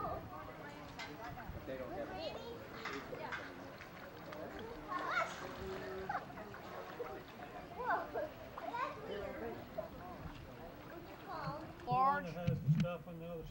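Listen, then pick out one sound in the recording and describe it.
Young girls talk and call out excitedly outdoors.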